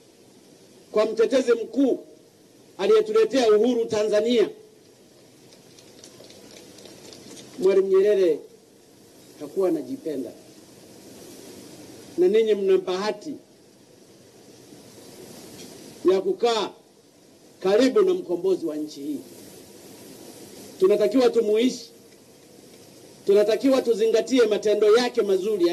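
A man speaks loudly through a microphone and loudspeakers outdoors, in short phrases with pauses.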